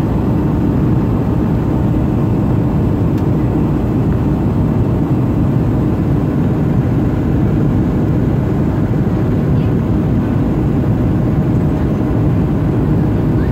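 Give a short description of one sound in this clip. Jet engines roar steadily with a deep, constant rumble.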